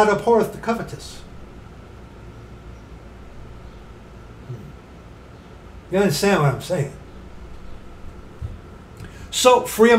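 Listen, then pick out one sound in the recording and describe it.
A middle-aged man speaks calmly close to a microphone.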